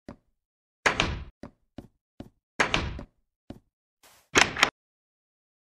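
A wooden door creaks open and bangs shut.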